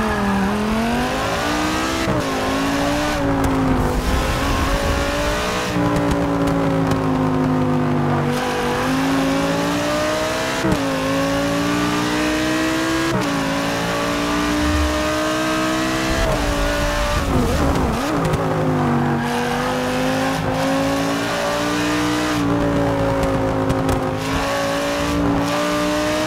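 A race car engine roars loudly, rising and falling in pitch as it shifts gears.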